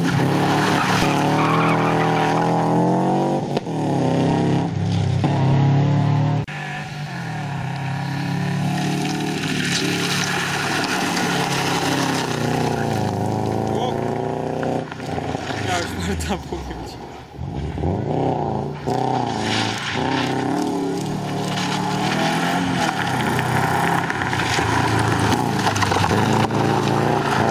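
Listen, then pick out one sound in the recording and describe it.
A rally car engine revs hard and roars as it races past.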